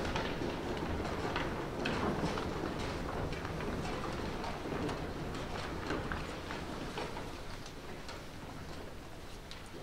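Footsteps of many people walk across a wooden stage in a large echoing hall.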